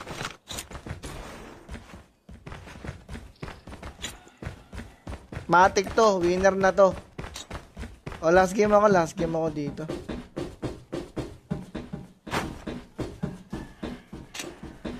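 Quick footsteps run over a hard floor.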